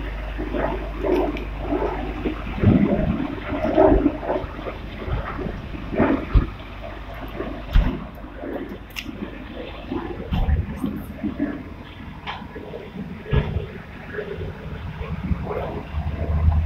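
A man talks close by, describing something.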